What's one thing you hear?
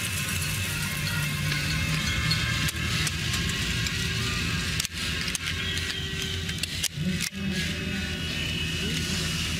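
Skis slide and scrape over snow.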